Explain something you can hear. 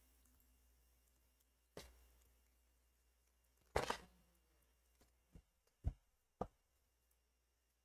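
Playing cards tap and slide softly as they are laid down.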